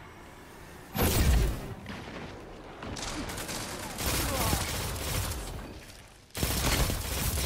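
A sniper rifle fires loud, booming shots.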